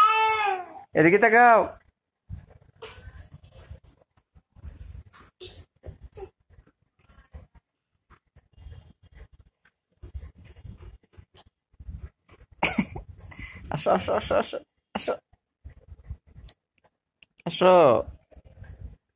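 A small boy squeals with laughter close by.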